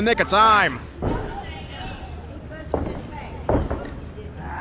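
Bodies thump on a wrestling ring mat.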